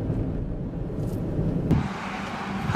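A car drives along a road with a low rumble.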